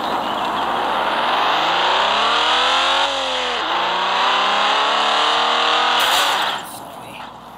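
A car engine revs up through its gears, rising and falling in pitch.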